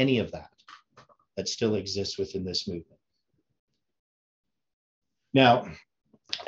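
An older man speaks calmly and closely into a microphone, in short bursts with pauses.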